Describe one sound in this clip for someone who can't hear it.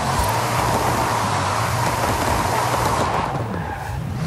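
A car's tyres screech as it spins in a burnout.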